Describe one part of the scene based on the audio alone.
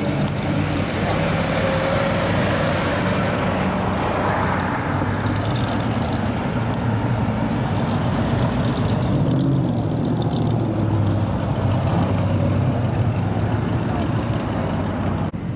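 Cars roll slowly past on pavement.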